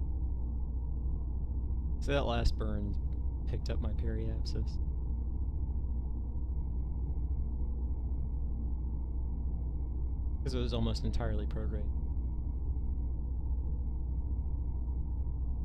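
A low, steady spacecraft engine hum drones on.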